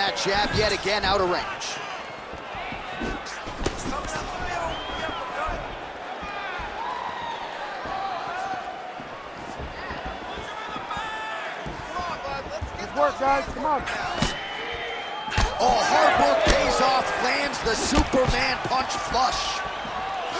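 A crowd murmurs in a large arena.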